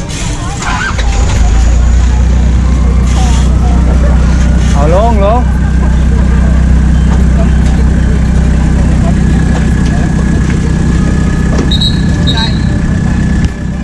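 A truck engine starts and idles with a steady low rumble.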